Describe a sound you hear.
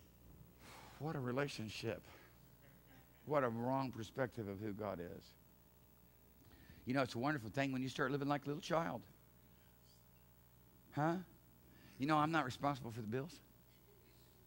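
A man speaks calmly to an audience through a microphone in a large room.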